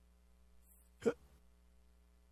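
A page of a book flips over.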